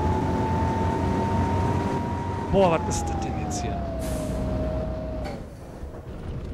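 A bus engine hums loudly and its pitch falls.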